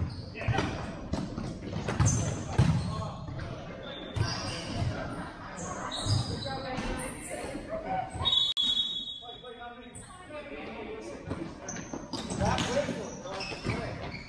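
Sneakers squeak sharply on a hard indoor court.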